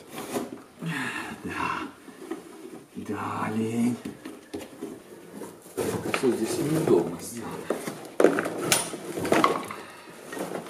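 Stiff carpet padding rustles and scrapes as it is pulled up.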